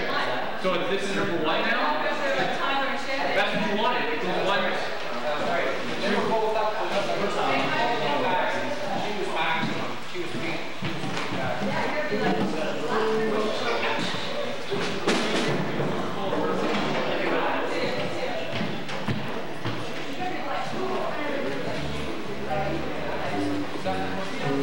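A band plays drums and guitars.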